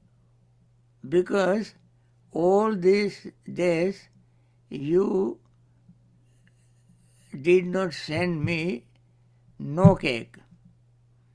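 A man speaks slowly and calmly through a microphone, with long pauses.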